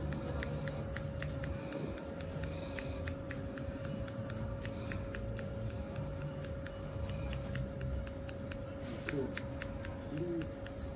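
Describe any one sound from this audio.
Scissors snip hair in quick, repeated clicks, close by.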